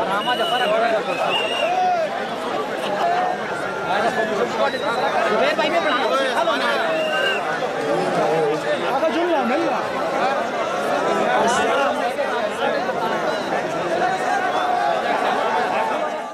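A large outdoor crowd of men talks and shouts all at once nearby.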